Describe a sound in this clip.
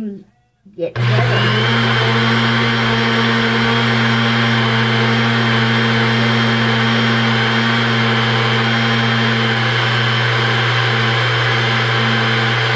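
A blender motor whirs loudly and steadily.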